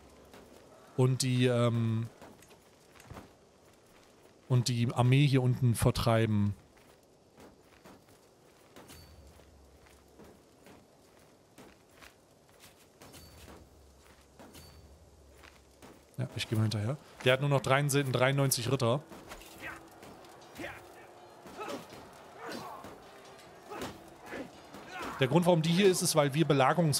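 A man speaks with animation into a close microphone, in short bursts with pauses.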